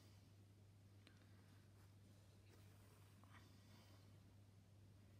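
Fabric rustles softly as thread is pulled through cloth.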